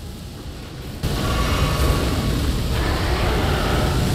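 A creature breathes a roaring blast of fire.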